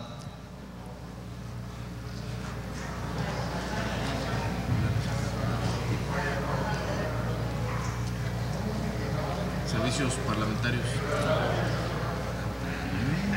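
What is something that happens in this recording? A crowd of men and women chatters quietly in a large echoing hall.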